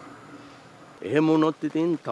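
An older man speaks close by in a deep voice.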